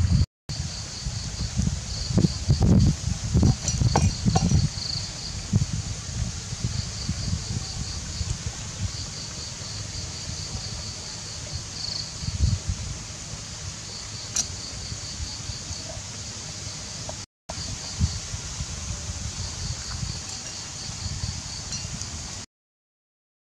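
A knife chops into a soft log with dull knocks.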